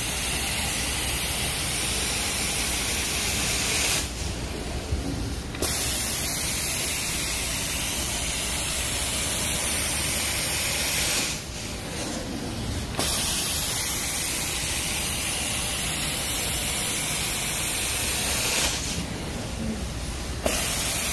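A carpet cleaning machine's suction roars with a loud, steady hiss that drops away briefly a few times.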